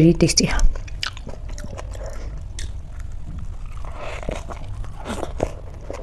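Crisp lettuce crunches loudly as a woman chews close to a microphone.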